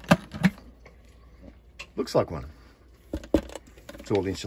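A metal pot lid clicks and clatters as it is opened.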